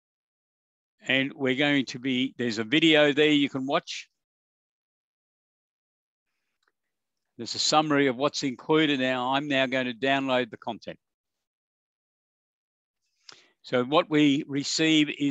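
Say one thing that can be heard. A man speaks calmly and close to a microphone, in bursts with pauses.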